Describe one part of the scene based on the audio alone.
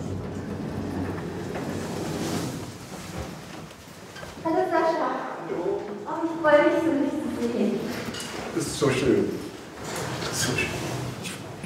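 Footsteps walk along a hallway.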